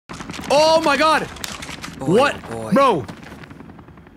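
A young man exclaims loudly and excitedly close to a microphone.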